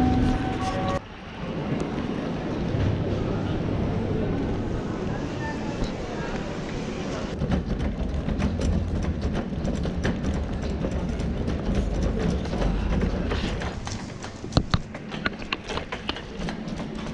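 A trolley's wheels rumble and rattle over a tiled floor.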